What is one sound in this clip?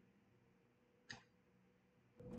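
A heavy door clicks open.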